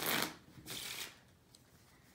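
Playing cards shuffle and riffle.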